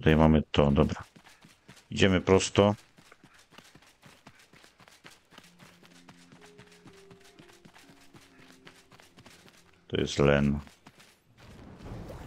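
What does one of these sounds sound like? Footsteps patter quickly over dirt and grass.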